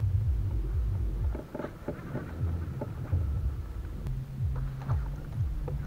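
A plastic kayak thumps and creaks as a man stands up in it.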